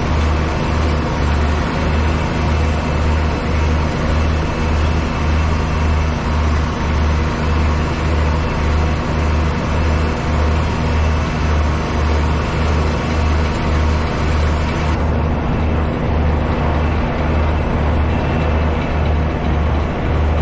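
A tractor engine drones steadily up close.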